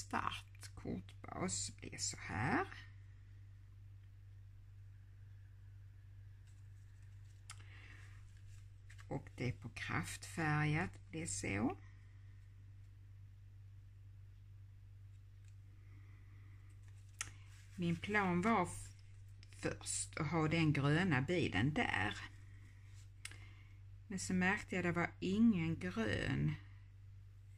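Stiff cardboard cards rustle and tap as hands handle them.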